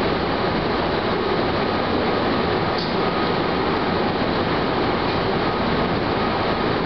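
Train wheels clatter over the track joints.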